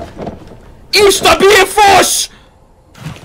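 A young woman shrieks loudly into a microphone.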